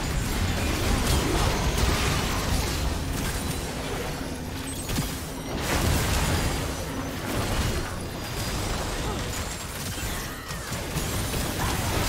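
Magic spells whoosh and crackle with impacts in a busy battle.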